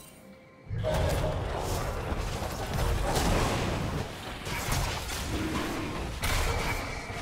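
Magic blasts crackle and boom in quick bursts.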